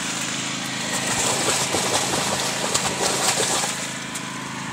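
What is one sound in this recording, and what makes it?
Water splashes as a large fish is dropped into a pond.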